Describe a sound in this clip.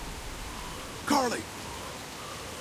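A man speaks in a tense, urgent voice.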